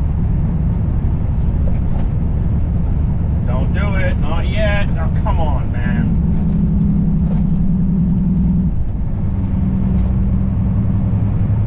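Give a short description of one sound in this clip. A truck engine drones steadily while driving on a highway.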